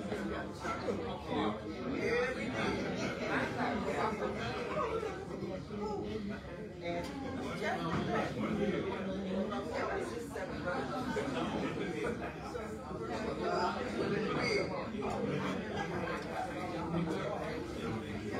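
A man speaks through a microphone and loudspeakers in a large room.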